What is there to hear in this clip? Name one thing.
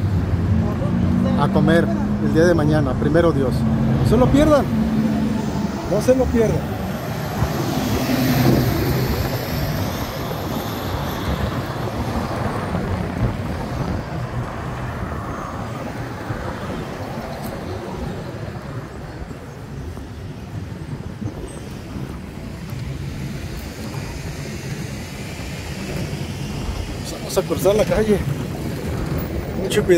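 Traffic hums steadily along a busy road outdoors.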